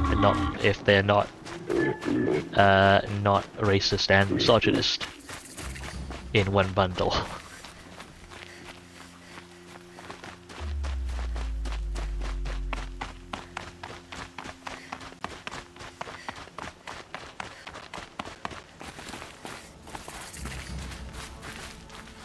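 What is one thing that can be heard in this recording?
Footsteps patter quickly on dirt and stone.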